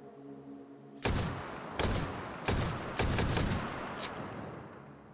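A rifle fires several loud shots that echo and ring out.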